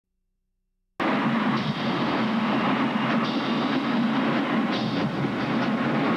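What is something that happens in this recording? A marching band's brass plays loudly in a large open stadium.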